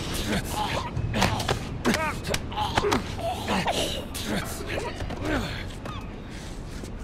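Two bodies scuffle and thud together in a struggle.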